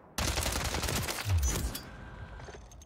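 A gun fires rapid shots that echo.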